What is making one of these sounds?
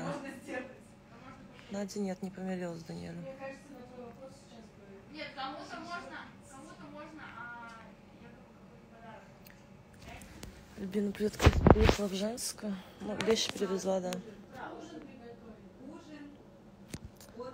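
A young woman talks softly and close up.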